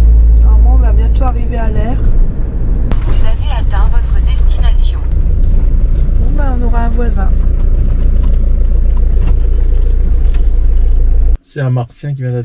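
A vehicle engine rumbles low and steady from inside the cab.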